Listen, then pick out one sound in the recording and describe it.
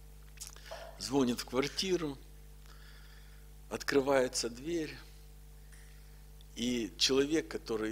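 A middle-aged man speaks calmly and with animation into a microphone, with pauses between phrases.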